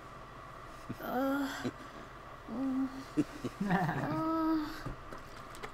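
A young boy speaks with surprise, close by.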